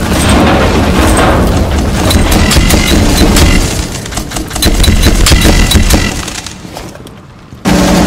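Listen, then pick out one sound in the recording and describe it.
Rapid gunfire crackles from a video game.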